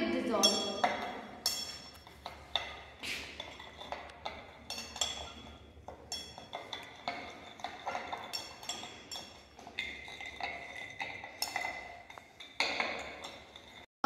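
Glassware clinks lightly.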